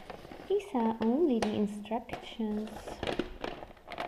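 Paper rustles as hands handle it.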